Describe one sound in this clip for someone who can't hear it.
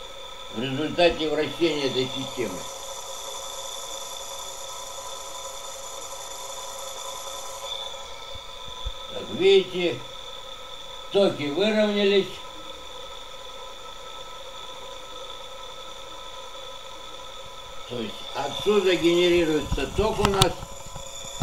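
A small electric motor whirs steadily with a high whine.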